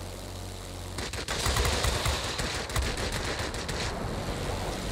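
A plane's machine guns fire in rapid bursts.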